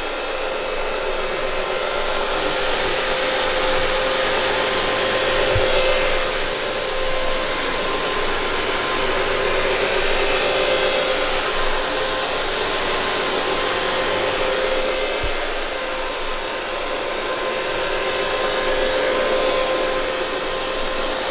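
A carpet cleaning machine whirs and hums loudly and steadily.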